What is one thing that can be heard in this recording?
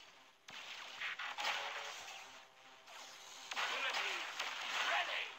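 Laser blasts and explosions from a video game crackle and boom.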